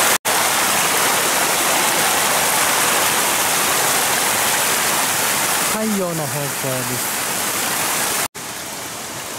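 A stream rushes and splashes over rocks close by.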